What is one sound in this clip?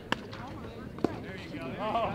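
A bat cracks against a ball once.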